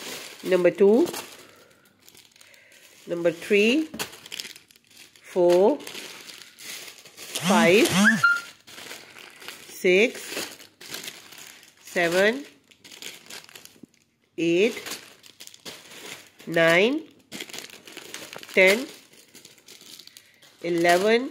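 Plastic packaging crinkles and rustles as it is handled.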